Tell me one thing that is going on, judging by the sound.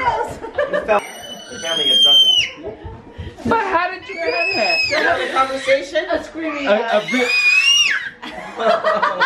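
A toddler babbles and squeals in a high voice.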